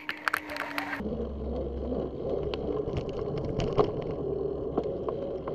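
Wind buffets a microphone.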